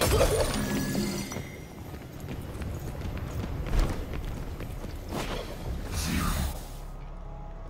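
Magic bursts crackle and whoosh.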